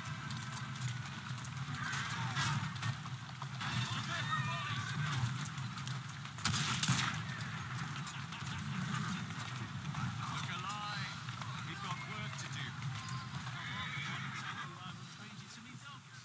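A horse-drawn carriage rumbles over cobblestones.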